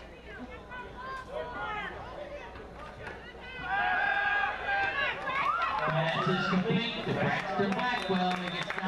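Young players and spectators shout and chatter nearby outdoors.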